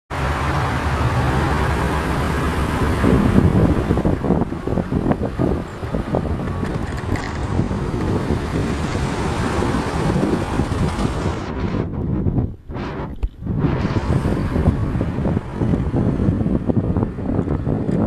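Wind blows hard across the outdoors, rumbling and gusting.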